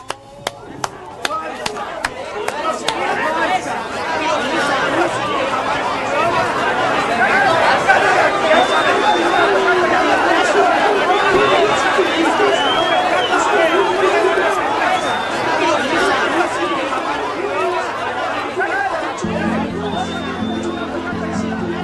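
A crowd of men cheers and shouts excitedly.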